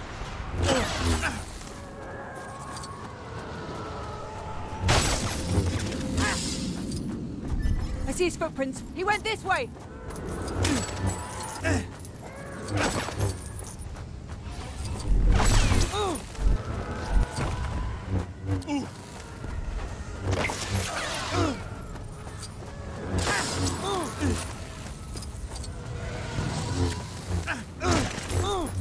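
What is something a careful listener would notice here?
Plastic bricks smash apart and clatter.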